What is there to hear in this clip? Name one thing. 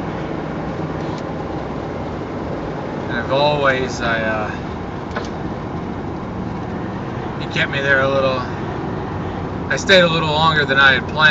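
A car drives along a road with a steady low rumble of tyres and engine.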